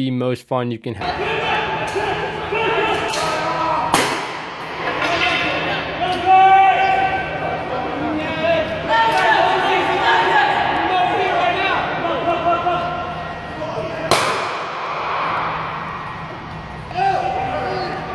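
Young men shout and laugh in a large echoing hall.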